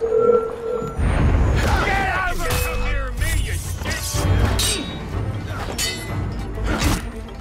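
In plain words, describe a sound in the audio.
Swords clash and ring in a close fight.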